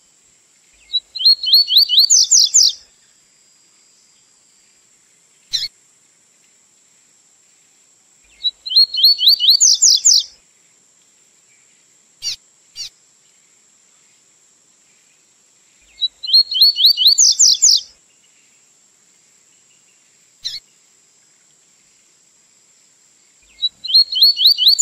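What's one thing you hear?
A small songbird sings repeated bursts of quick, high trilling notes close by.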